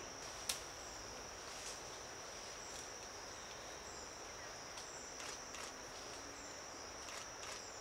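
Leaves and branches rustle as a gorilla climbs in a tree.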